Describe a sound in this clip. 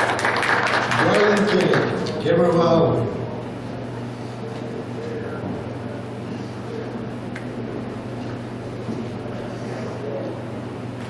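An elderly man speaks calmly through a microphone in a large hall.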